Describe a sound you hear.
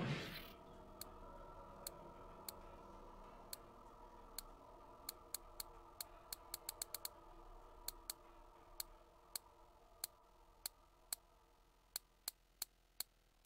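Short interface clicks tick at uneven intervals.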